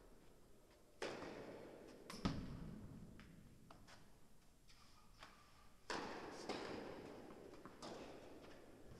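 Tennis balls are struck with rackets, echoing in a large indoor hall.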